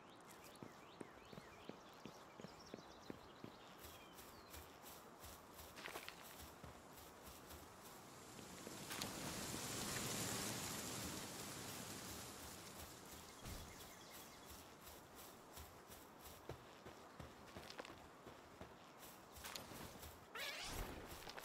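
Footsteps patter quickly over grass.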